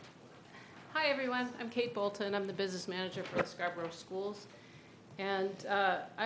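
A middle-aged woman speaks into a microphone, reading out.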